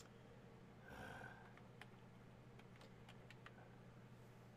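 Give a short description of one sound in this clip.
A man types on a keyboard.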